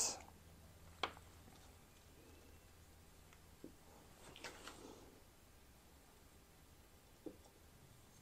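Small metal parts click softly as they are handled.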